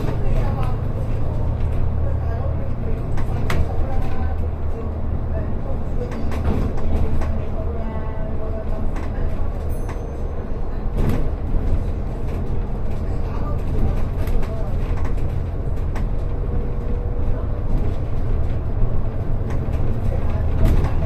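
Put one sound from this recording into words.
A vehicle's engine rumbles steadily as it drives along a road.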